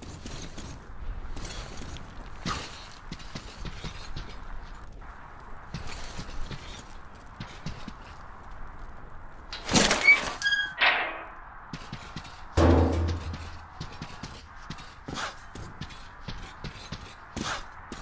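Footsteps crunch steadily on gravel and debris.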